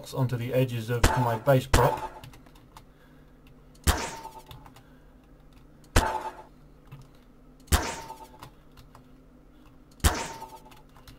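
A tool fires with a sharp electric zap.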